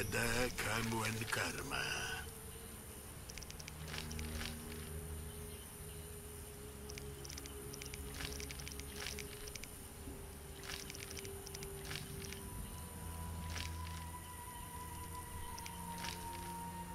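A man speaks quietly and calmly into a close microphone.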